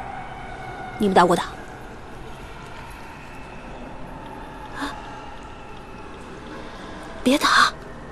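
A young woman sobs and whimpers nearby.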